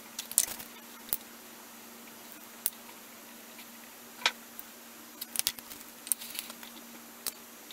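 Small plastic cosmetic cases click and tap close by.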